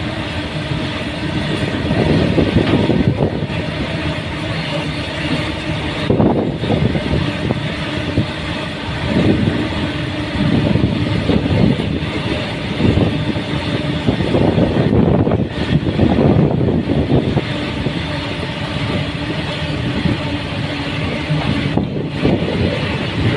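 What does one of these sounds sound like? A freight train rumbles and clatters loudly along the tracks close below.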